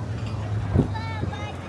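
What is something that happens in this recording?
A young child calls out in the open air.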